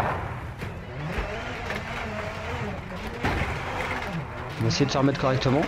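Tyres crunch over gravel.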